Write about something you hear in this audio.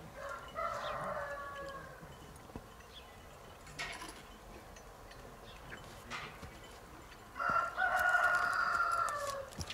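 A horse snorts nearby.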